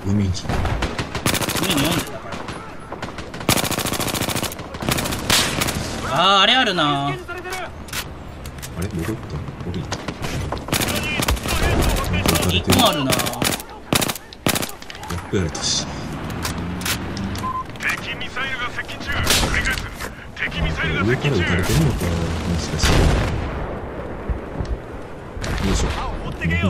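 Rapid gunfire bursts from a rifle.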